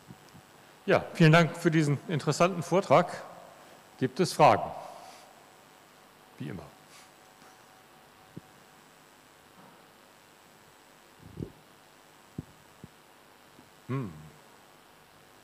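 A man speaks briefly into a microphone in a large echoing hall.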